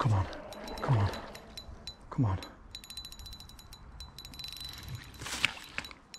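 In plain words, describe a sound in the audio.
A fish splashes in the water close by.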